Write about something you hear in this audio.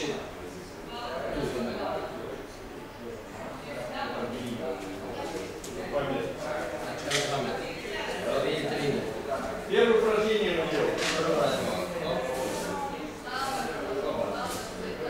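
A man speaks loudly to a group in an echoing hall.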